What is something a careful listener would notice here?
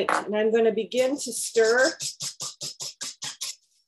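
A whisk rattles quickly against the side of a bowl.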